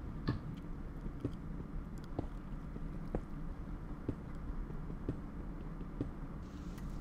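A pickaxe strikes stone blocks in steady, regular knocks.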